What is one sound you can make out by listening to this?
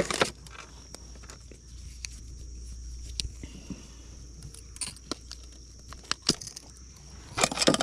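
Metal pliers click and snap.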